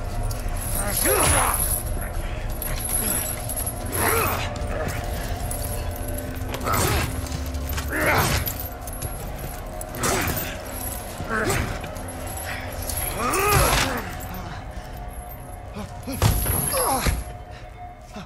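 Heavy blows and thuds land in bursts.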